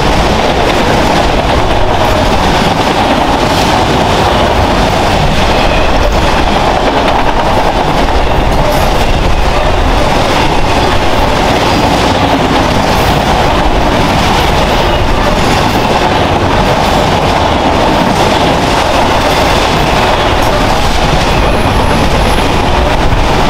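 A long freight train rumbles loudly past close by.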